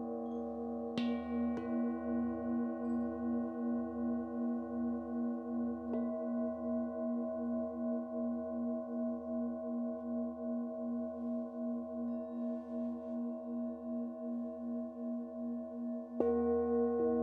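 A singing bowl is struck, sounding a bright ringing note.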